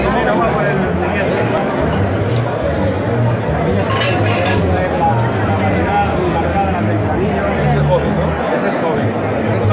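A crowd of men and women chatters loudly all around in a large echoing hall.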